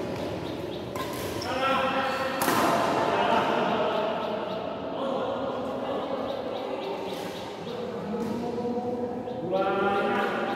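A badminton racket strikes a shuttlecock with a sharp pop.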